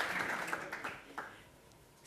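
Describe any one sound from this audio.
A young woman speaks into a microphone in a large hall.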